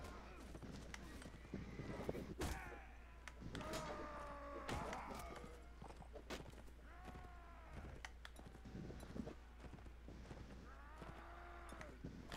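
Men shout and cry out in battle.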